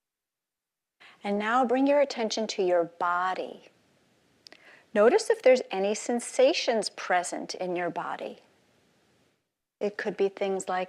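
A middle-aged woman speaks with animation.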